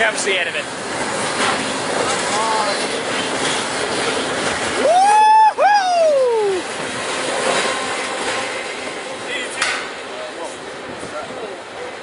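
Train wheels clatter over the rail joints.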